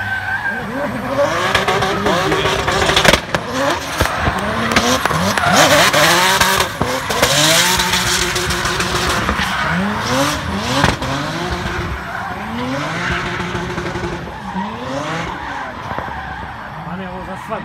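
Tyres screech and squeal on the tarmac.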